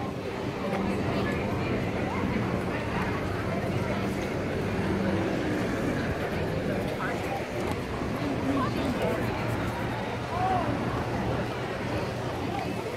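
A crowd of people chatters on a busy street outdoors.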